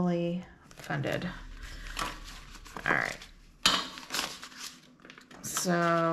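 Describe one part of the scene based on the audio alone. Paper banknotes rustle as they are counted.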